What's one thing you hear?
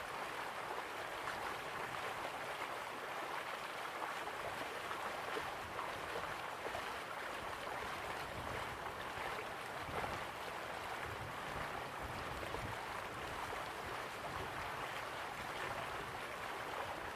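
Water roars and rushes steadily.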